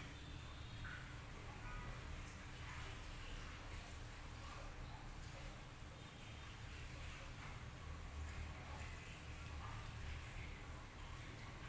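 Hands softly rub skin in a gentle face massage.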